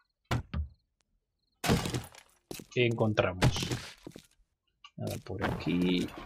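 A pickaxe thuds against a hard floor.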